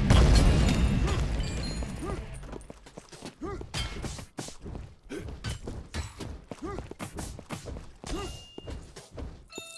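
Sword swings whoosh and strike in quick repeated hits.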